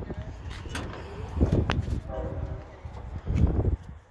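A car door latch clicks and the door creaks open.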